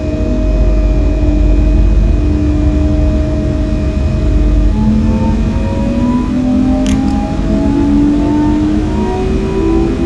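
An electric train's motors whine, rising steadily in pitch as the train speeds up.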